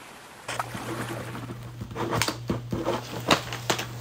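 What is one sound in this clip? A marker pen squeaks and scratches across a surface.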